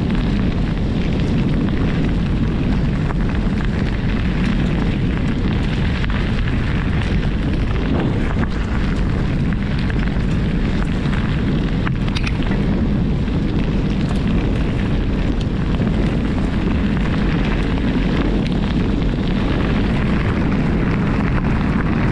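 Tyres roll and crunch steadily over a gravel track.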